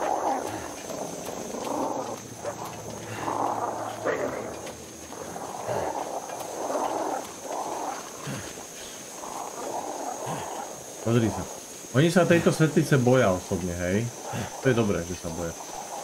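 A flare burns with a steady hiss.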